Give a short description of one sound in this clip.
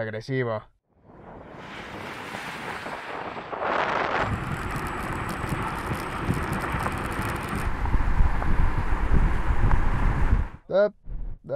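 Cars speed past on tarmac with a rising and fading rush.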